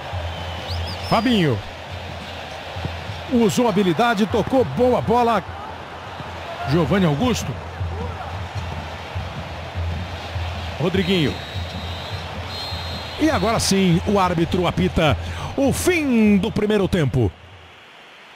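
A stadium crowd murmurs and roars steadily in the background.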